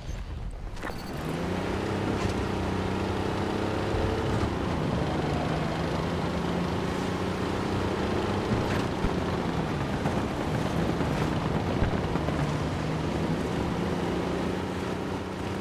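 Tank tracks clatter and grind over dirt.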